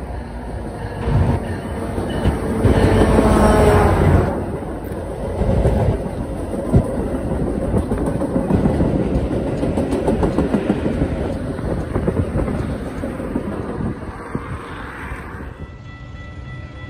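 A passenger train rumbles past close by, its wheels clattering on the rails.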